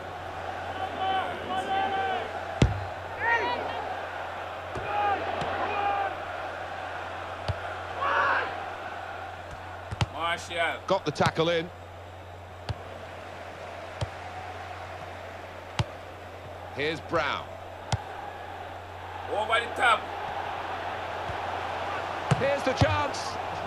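A large stadium crowd murmurs and cheers steadily.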